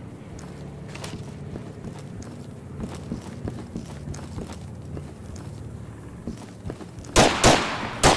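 Footsteps thud steadily on hard ground.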